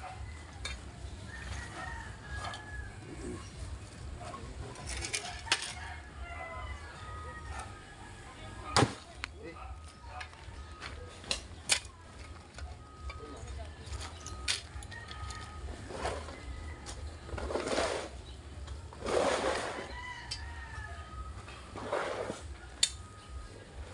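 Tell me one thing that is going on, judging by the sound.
Metal tools knock sharply against stones.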